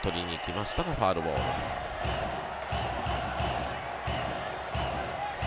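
A stadium crowd cheers with steady rhythmic drumming.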